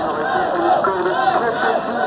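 A crowd cheers and shouts in a stadium.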